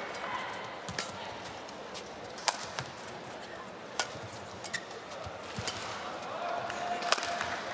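Rackets strike a shuttlecock with sharp pops in a rally.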